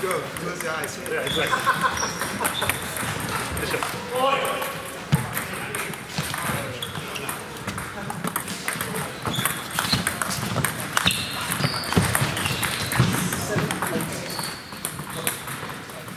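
Table tennis balls click on other tables in a large echoing hall.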